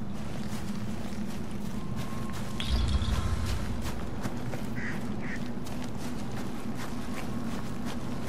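Footsteps crunch on snowy ground.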